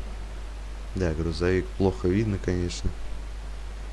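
A young man speaks briefly and close to a microphone.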